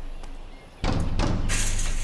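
Wire cutters snip through barbed wire.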